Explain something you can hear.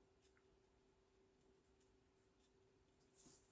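A felt-tip marker softly scratches across paper.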